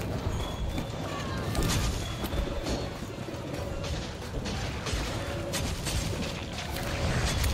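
Heavy weapon blows thud and clang in quick succession.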